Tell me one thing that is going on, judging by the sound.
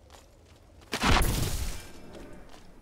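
An electric crackle bursts loudly and fades.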